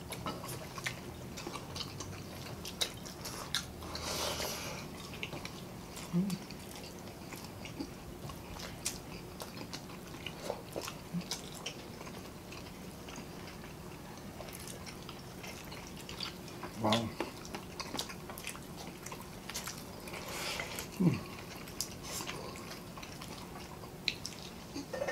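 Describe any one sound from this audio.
People chew and slurp food noisily close by.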